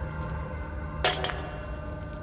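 A metal object clanks sharply on a tiled floor.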